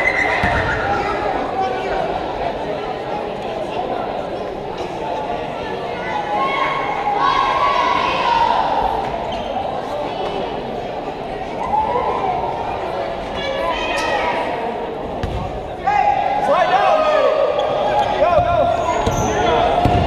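Sneakers squeak on the wooden court.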